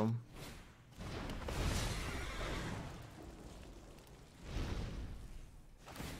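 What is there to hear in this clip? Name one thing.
A fiery whoosh bursts and crackles.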